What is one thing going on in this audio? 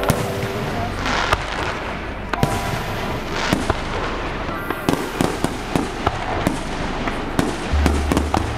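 Fireworks crackle and fizz as sparks burst.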